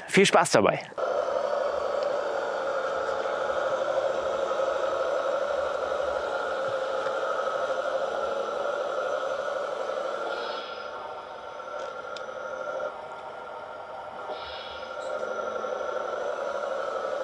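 A small electric motor whirs steadily as a toy tractor drives over soil.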